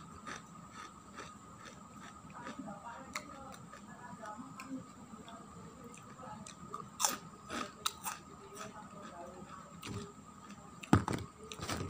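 A man crunches crispy crackers while chewing close by.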